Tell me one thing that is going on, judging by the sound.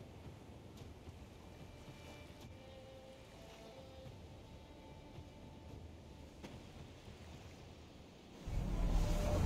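Waves wash against a sailing ship's hull.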